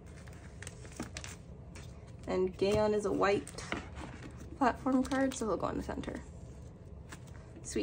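Plastic binder sleeves crinkle and rustle close by.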